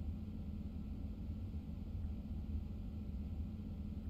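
Wheels rumble over rail tracks.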